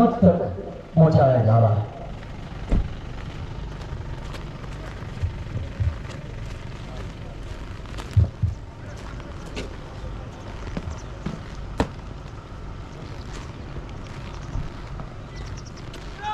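Boots stamp and march on hard ground.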